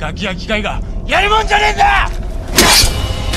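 A young man groans in strain.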